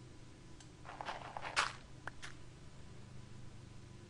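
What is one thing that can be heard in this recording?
A block crunches as it is dug out.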